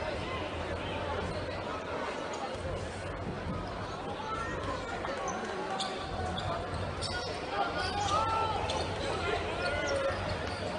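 A crowd murmurs and chatters in a large echoing arena.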